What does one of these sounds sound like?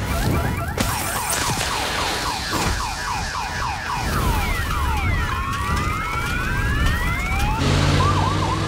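Flames roar and crackle nearby.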